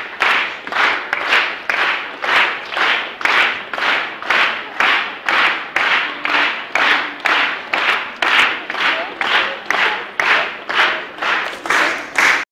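Children's footsteps stamp in a steady, quick rhythm.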